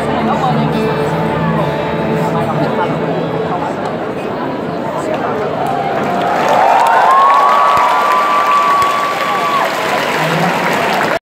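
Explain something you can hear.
A rock band plays live through loud speakers in a large echoing hall.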